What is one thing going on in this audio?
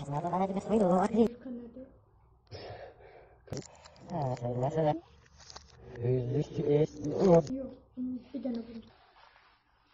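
A young woman speaks nearby in a calm, conversational way.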